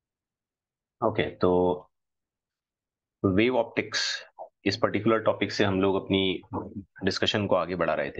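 A man speaks calmly through a microphone, as if on an online call.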